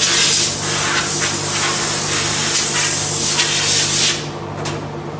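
Air hisses loudly from a sandblaster.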